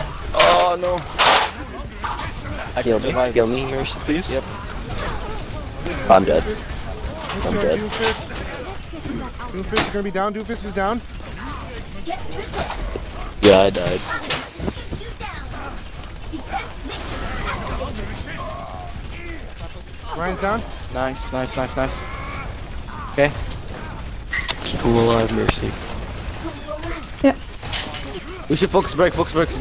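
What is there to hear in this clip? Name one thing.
Game guns fire in rapid bursts with sharp electronic blasts.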